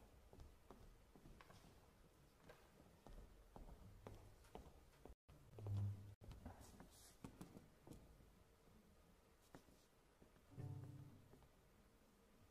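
Footsteps knock on a wooden stage.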